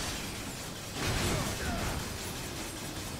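A powerful blast roars and crackles.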